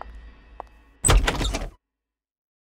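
A heavy metal door swings open with a loud whoosh.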